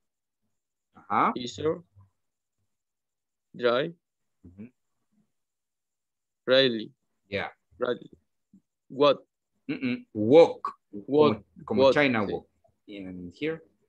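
A young man speaks over an online call, reading out calmly.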